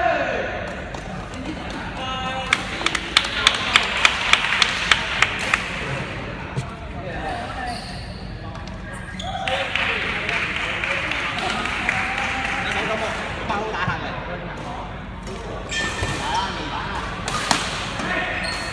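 Several young men chatter in a large echoing hall.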